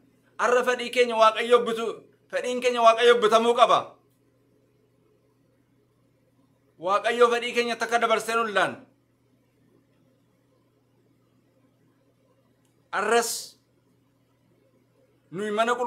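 A man speaks calmly close by, with pauses between phrases.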